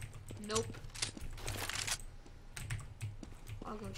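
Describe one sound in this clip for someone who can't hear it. A gun clicks and rattles as it is switched.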